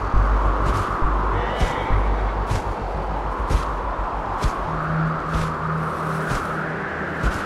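An eagle's wings beat with regular soft whooshes.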